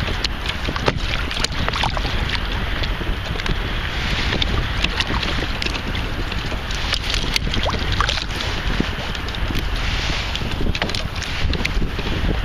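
A fish flaps and thrashes in a net.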